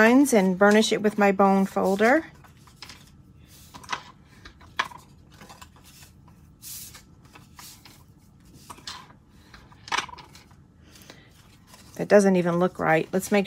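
Card stock rustles and creases as hands fold it.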